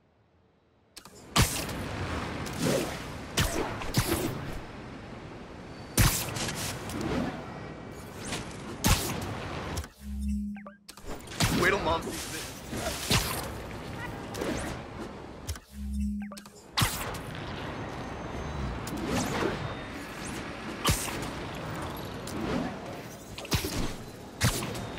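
Webs snap and thwip with sharp whooshes.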